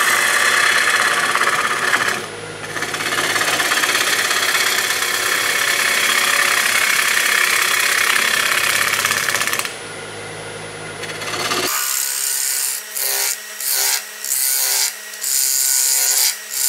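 A wood lathe spins while a chisel cuts into the wood with a loud, rough hiss that pauses briefly now and then.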